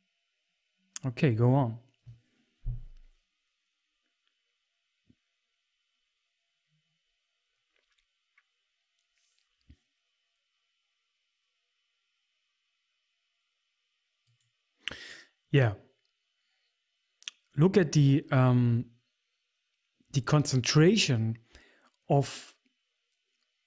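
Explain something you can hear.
A man speaks calmly into a close microphone, in short bursts with long pauses.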